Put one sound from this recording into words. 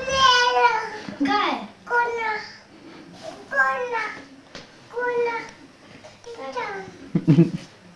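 A small child talks in a high, sing-song voice nearby.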